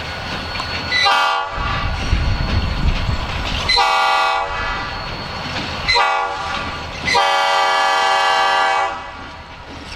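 A diesel locomotive blasts its horn several times.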